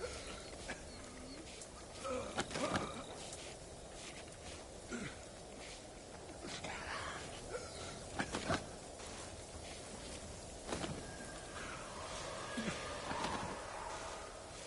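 Footsteps shuffle slowly on the ground.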